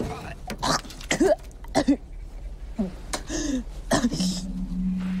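Metal objects clatter and knock as someone rummages inside an old car.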